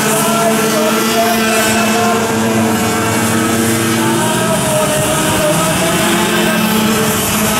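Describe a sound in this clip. Several go-kart engines buzz and whine loudly as the karts race past.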